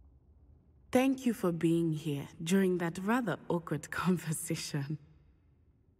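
A second young man answers calmly, close by.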